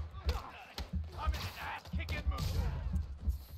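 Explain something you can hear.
A man snarls a taunt.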